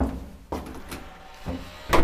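A lift button clicks as it is pressed.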